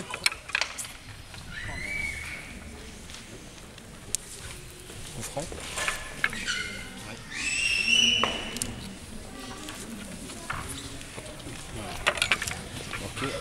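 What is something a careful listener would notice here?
Small plastic figures are flicked and click against a ball on a table.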